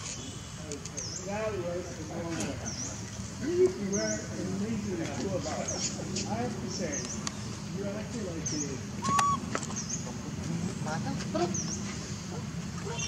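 A baby monkey squeaks and whimpers softly.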